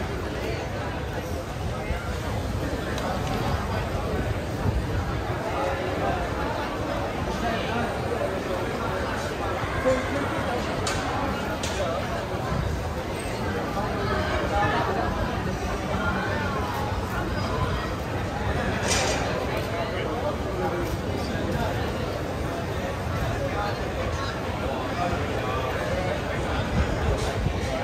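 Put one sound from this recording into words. A large crowd chatters in a lively hubbub outdoors.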